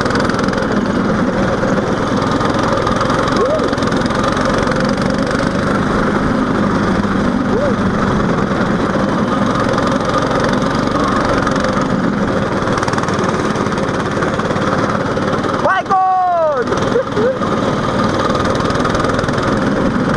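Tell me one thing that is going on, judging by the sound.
A go-kart engine buzzes loudly and steadily up close.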